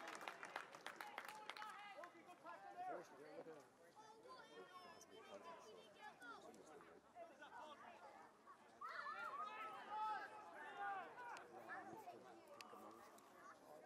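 A man close by talks with animation outdoors.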